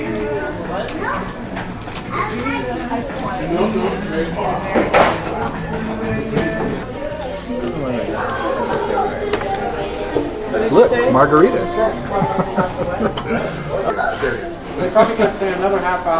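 Several men and women chat and murmur indoors.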